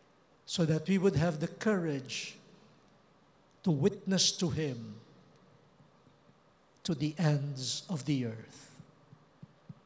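A man speaks slowly into a microphone over a loudspeaker, in bursts with pauses, in a large echoing hall.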